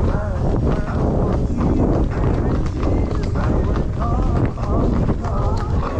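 A horse's hooves clop steadily on a paved road.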